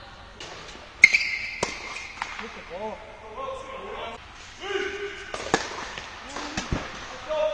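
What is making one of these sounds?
A tennis racket strikes a ball in an echoing indoor hall.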